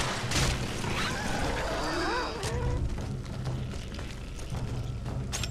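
Weapons fire and strike in a fast fight with sharp cracks.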